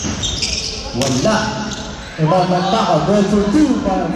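Young men call out to each other across an echoing gym.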